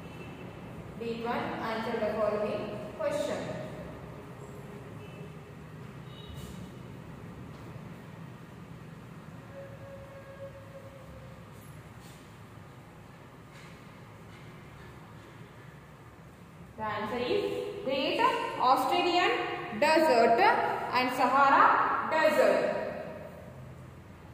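A woman speaks nearby, explaining calmly.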